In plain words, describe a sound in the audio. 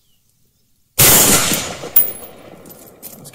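A rifle fires a single loud shot that echoes outdoors.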